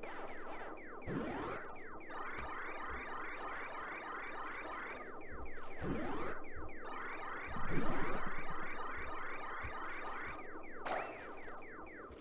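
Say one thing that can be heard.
A video game plays quick, repeating electronic chirps and blips.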